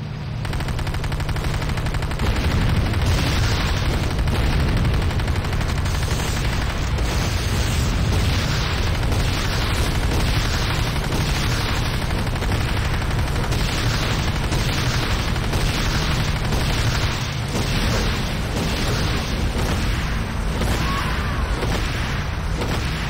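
Explosions burst nearby.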